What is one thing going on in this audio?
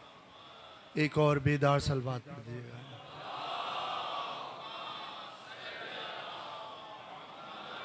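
A man speaks with feeling into a microphone.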